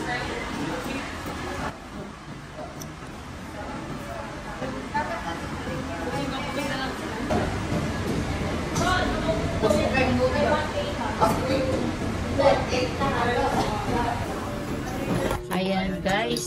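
Several men and women chat and laugh close by.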